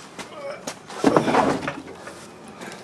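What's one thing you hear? A wooden crate slides into a truck bed.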